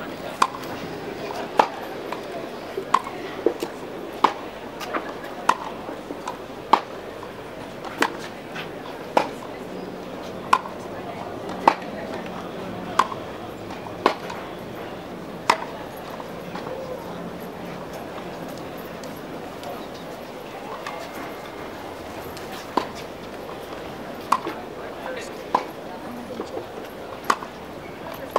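A tennis ball is struck sharply with a racket again and again, outdoors.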